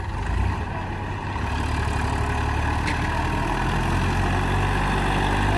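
A tractor engine idles and chugs steadily nearby.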